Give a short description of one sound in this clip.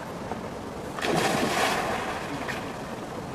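A person plunges into water with a loud splash.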